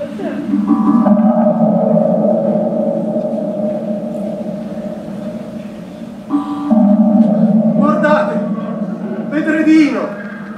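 A man sings loudly in a large echoing hall, holding long notes.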